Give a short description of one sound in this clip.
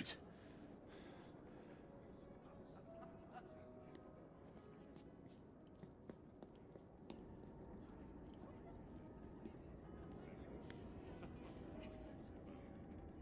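Soft footsteps creak on wooden floorboards.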